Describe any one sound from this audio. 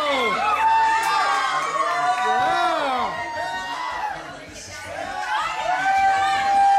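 A group of young women and men sing loudly together close by.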